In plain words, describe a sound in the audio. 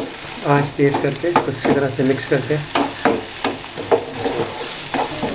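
A spatula scrapes and clacks against a frying pan.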